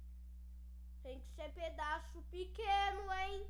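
A boy shouts and exclaims loudly, close to a microphone.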